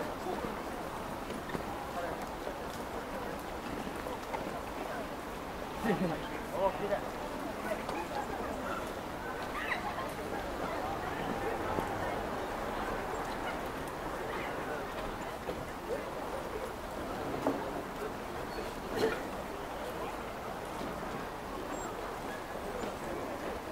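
A crowd of people chatters in the distance outdoors.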